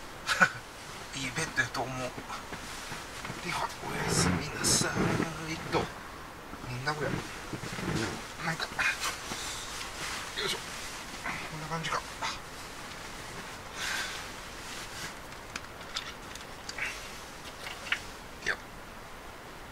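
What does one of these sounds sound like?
A duvet rustles as a man shifts in bed.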